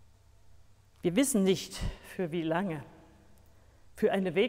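A woman reads aloud slowly and clearly into a microphone, in a room with a slight echo.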